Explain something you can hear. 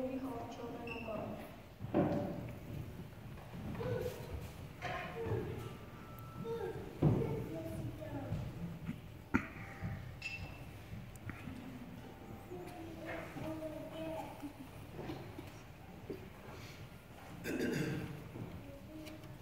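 A choir of young children sings together in a large echoing hall.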